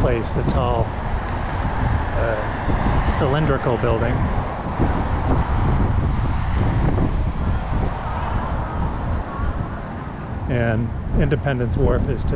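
Cars drive along a nearby road.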